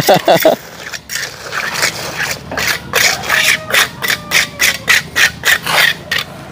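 A trowel scrapes and taps on wet concrete in quick repeated strokes.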